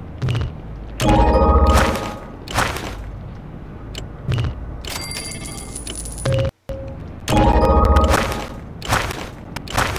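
A bright jingle plays as a reward pops up.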